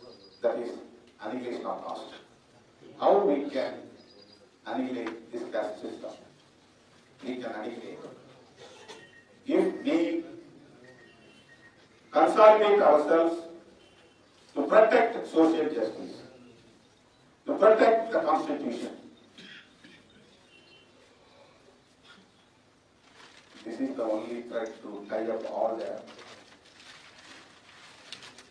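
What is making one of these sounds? A middle-aged man speaks forcefully into a microphone in short bursts with pauses.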